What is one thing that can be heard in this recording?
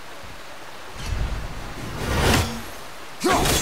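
A heavy axe whooshes through the air.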